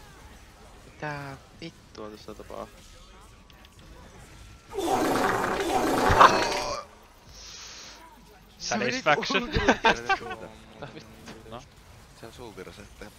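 Game spell effects whoosh and blast in bursts.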